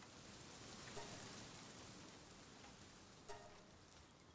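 Soft interface clicks sound.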